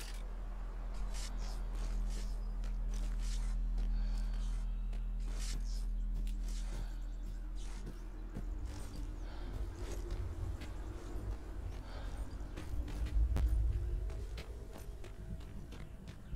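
Footsteps crunch steadily along a gravel road.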